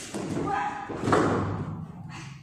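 A body slams down hard onto a padded mat.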